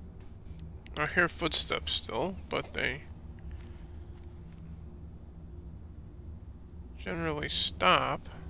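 A man speaks in short bursts close to a headset microphone.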